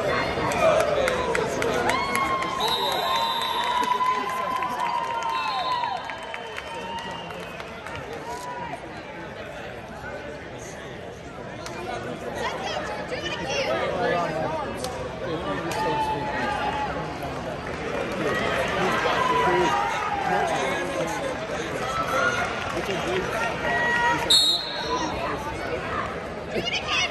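A crowd murmurs and calls out in a large echoing arena.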